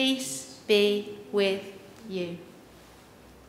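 A woman speaks warmly into a microphone in a reverberant room.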